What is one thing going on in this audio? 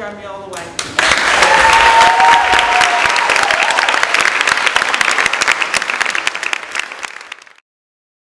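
A crowd applauds loudly in a room.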